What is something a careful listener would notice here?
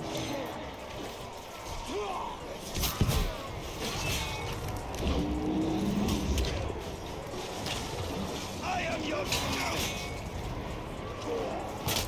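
Blades clash and strike in a close fight.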